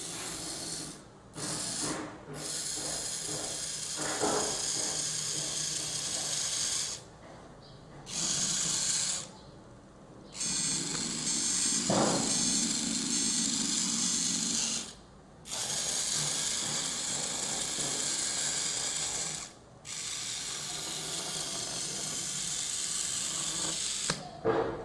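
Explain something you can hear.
Small electric motors whir as a toy robot rolls across a wooden floor.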